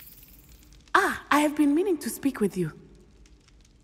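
A young man speaks calmly in a large echoing hall.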